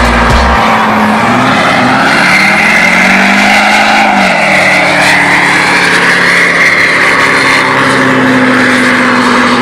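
Tyres squeal loudly as they spin on the road.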